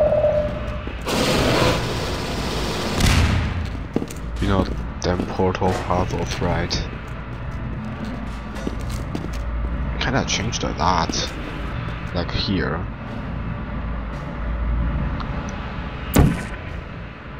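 A futuristic gun fires with sharp electric zaps.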